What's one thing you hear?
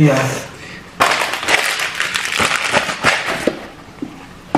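Paper rustles.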